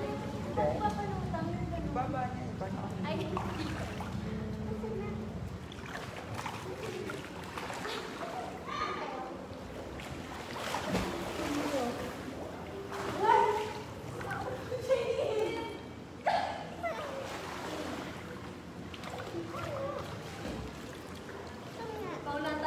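Water laps and splashes gently in a pool.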